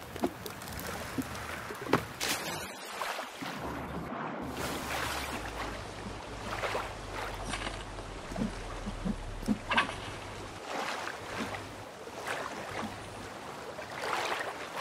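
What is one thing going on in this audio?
Water laps gently nearby.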